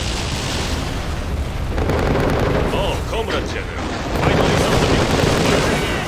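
A rocket whooshes as it launches.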